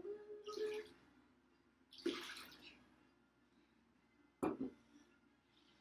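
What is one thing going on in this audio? A glass jar knocks as it is set down.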